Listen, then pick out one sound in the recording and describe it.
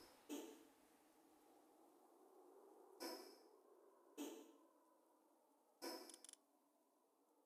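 Short game interface sounds chime as a menu opens and closes.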